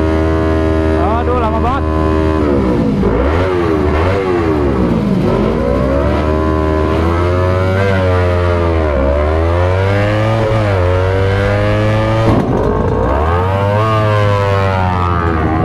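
A motorcycle engine revs loudly, rising and falling again and again.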